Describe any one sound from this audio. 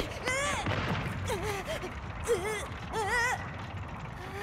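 A young boy whimpers in distress.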